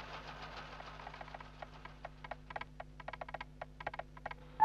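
A small hand crank turns with quick, rattling clicks.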